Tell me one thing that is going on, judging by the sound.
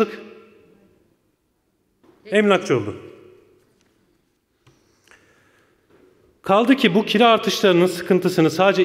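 A man speaks with emphasis into a microphone in a large echoing hall.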